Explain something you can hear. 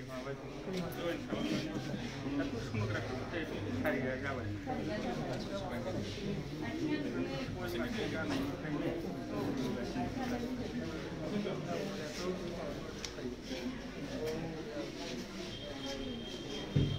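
Several men and women talk at once nearby.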